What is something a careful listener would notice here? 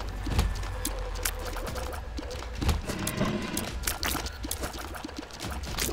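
Quick wet popping shots fire again and again.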